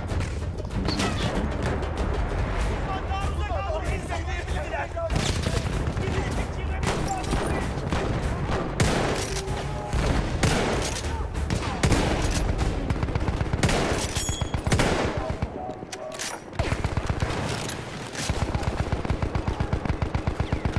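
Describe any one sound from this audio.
Explosions boom and rumble in the distance.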